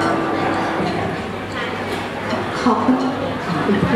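A piano plays a melody.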